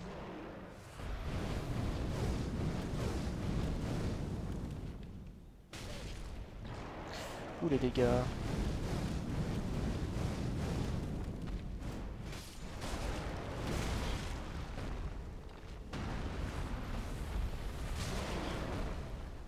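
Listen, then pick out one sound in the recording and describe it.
Fire roars in loud, rumbling bursts.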